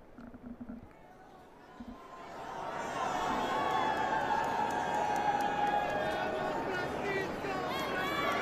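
A large outdoor crowd cheers and shouts excitedly, growing louder.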